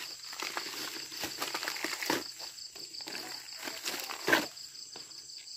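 Plant stalks crack and rustle as they are broken apart by hand.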